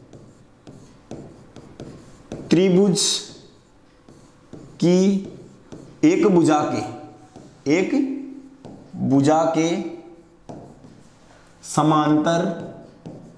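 A marker squeaks faintly on a board.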